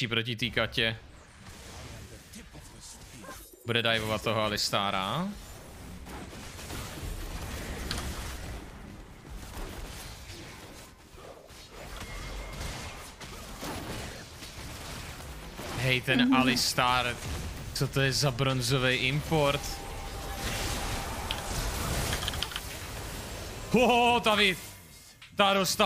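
Game sound effects of spells and combat crackle and whoosh.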